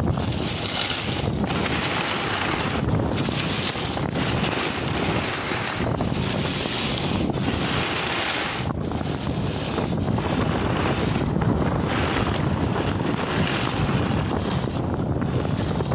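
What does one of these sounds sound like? Wind rushes loudly past close by.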